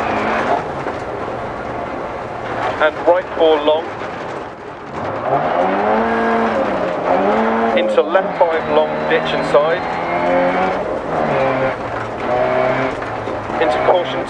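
A car engine revs hard, rising and falling as gears change.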